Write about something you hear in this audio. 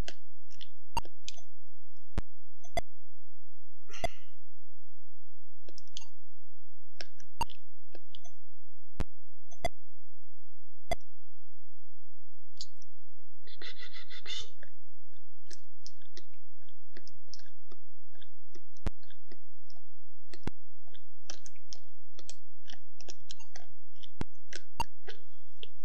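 Short electronic clicks sound now and then from a retro video game.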